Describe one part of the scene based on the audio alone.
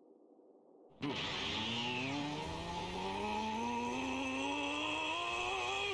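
A crackling energy burst roars and swells.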